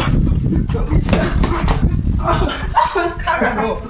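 Footsteps shuffle and stamp on a hard floor.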